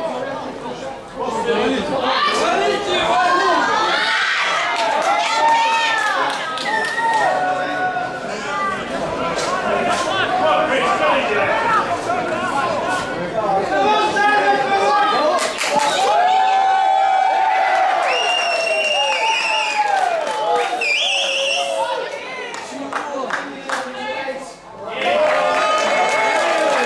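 Young men shout and call to each other outdoors.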